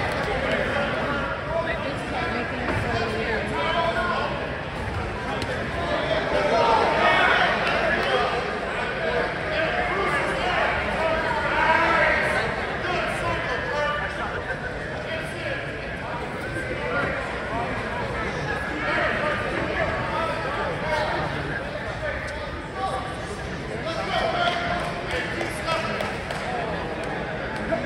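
A crowd murmurs and cheers throughout a large echoing hall.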